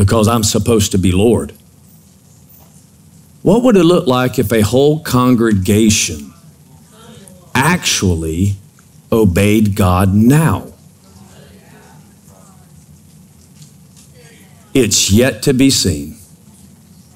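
A middle-aged man speaks slowly with long pauses through a microphone.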